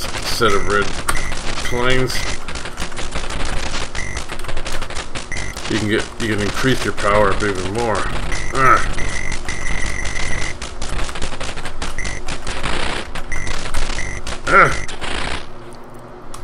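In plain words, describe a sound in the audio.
Rapid arcade gunfire rattles on and on.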